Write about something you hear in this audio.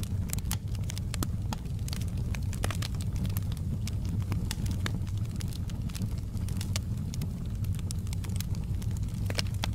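A wood fire crackles and pops with sharp snaps.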